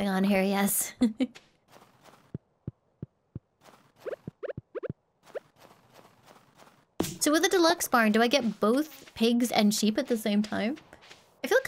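A young woman talks animatedly and close into a microphone.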